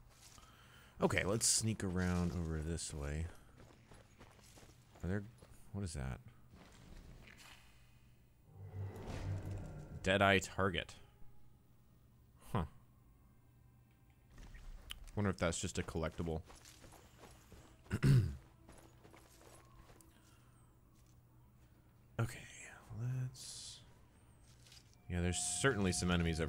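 A young man talks casually into a close microphone, in bursts with pauses.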